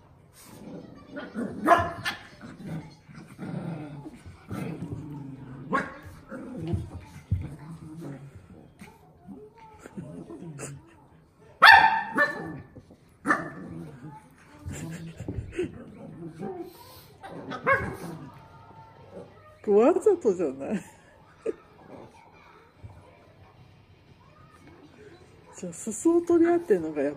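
Two small dogs scuffle and paw at each other on a soft blanket.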